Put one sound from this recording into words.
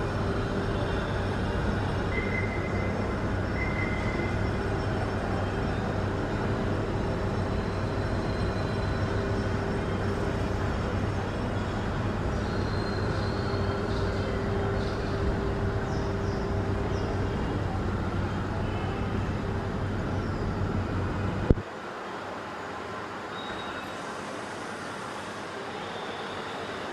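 A small bird chirps softly nearby.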